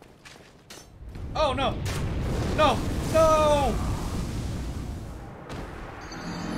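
Flames roar in a loud, rushing burst.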